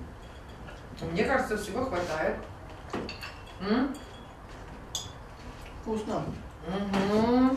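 A middle-aged woman talks nearby.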